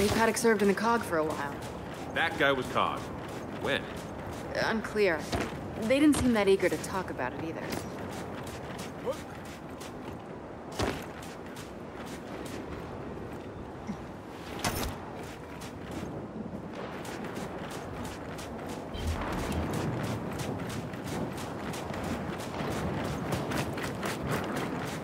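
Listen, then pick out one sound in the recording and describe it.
Footsteps crunch quickly over gravel and dirt.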